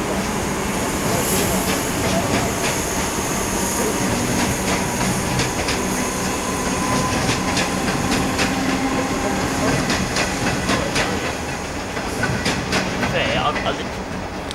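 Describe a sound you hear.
A passing train rumbles along the tracks with clattering wheels.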